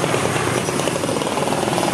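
Traffic passes along a nearby street.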